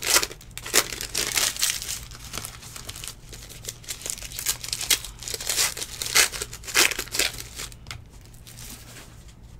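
Plastic wrapping crinkles and rustles as a card pack is torn open.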